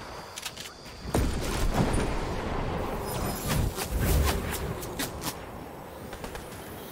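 Wind rushes past during a glide.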